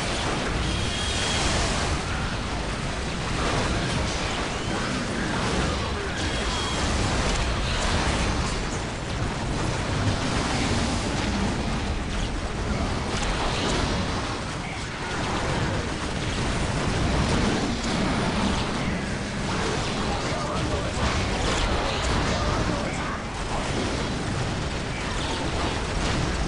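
Laser beams zap and hum.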